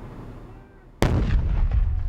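A loud explosion booms nearby and rumbles on.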